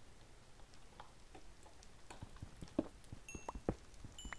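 Blocks crack and crumble in quick taps as a pickaxe digs through stone.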